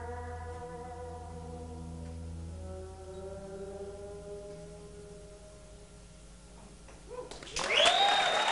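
An electric guitar plays slow, ringing notes.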